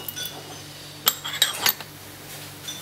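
A china lid clinks onto a cup.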